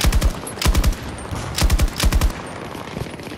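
A rifle fires in short, rapid bursts.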